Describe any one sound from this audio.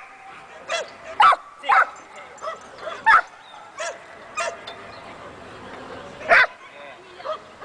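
A man calls out short, sharp commands to a dog nearby.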